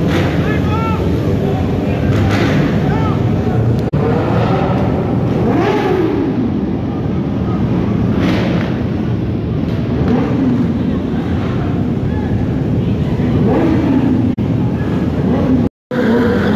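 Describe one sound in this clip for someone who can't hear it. A crowd of people talks and shouts nearby.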